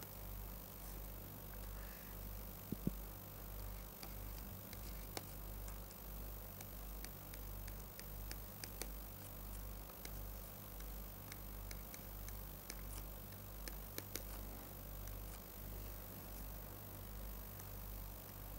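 A pen taps and scratches on a hard surface.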